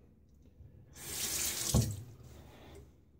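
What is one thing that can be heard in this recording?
Water runs briefly from a tap.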